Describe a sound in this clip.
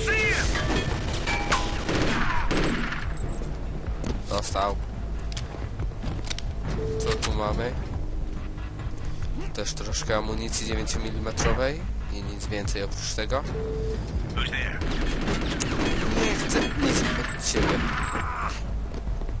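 A rifle fires a short burst.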